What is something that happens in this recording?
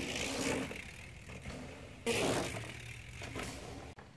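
A bicycle lands hard on packed dirt after a jump.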